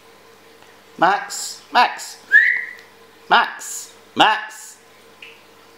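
A puppy barks in short, sharp yaps.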